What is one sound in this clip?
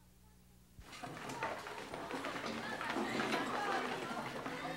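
A crowd of students chatters in a room.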